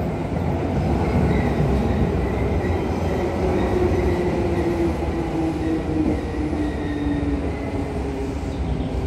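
Train wheels squeal and whine on the rails.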